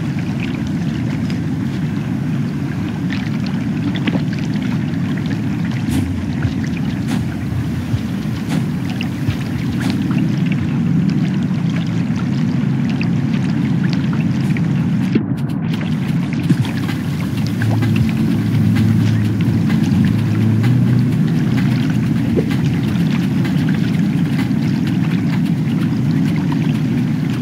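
A deep, low rumbling drone hums steadily.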